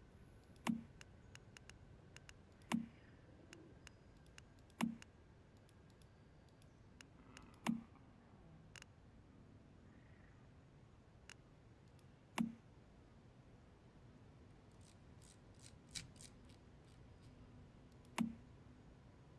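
Short interface clicks and chimes sound as menu options change.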